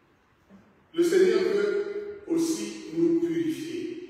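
A man speaks loudly and with animation in a large echoing hall.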